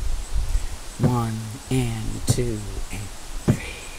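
A violin plays a few short bowed notes.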